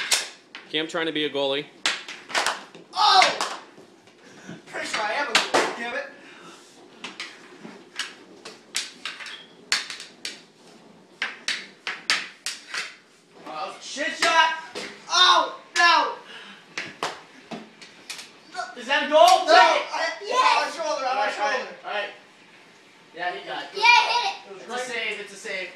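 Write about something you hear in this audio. A young man talks and laughs nearby.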